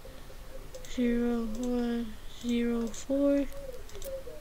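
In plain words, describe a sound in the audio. Keypad buttons beep as a number is typed.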